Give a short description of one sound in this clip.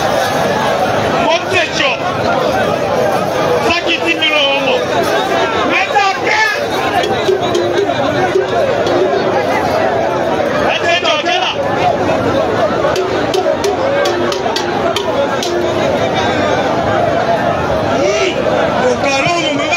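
A crowd chatters and shouts loudly outdoors.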